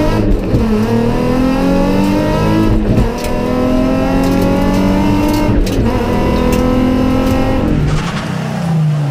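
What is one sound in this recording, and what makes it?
A rally car engine roars loudly from inside the cabin, revving up through the gears.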